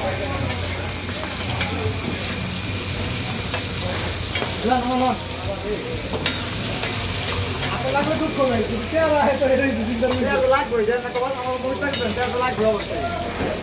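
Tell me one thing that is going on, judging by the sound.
A metal spatula scrapes and clinks against the griddle.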